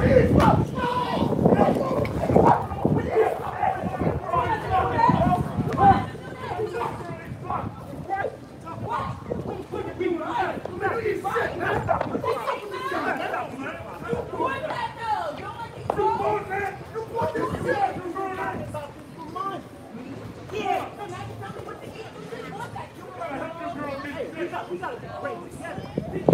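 A crowd of people talks and shouts outdoors nearby.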